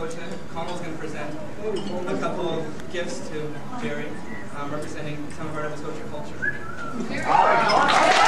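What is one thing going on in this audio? A young man speaks to a small group nearby.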